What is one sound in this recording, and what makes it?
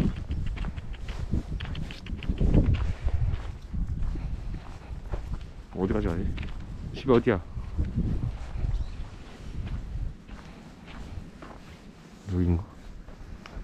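A man speaks gently and close by, calling out and asking questions.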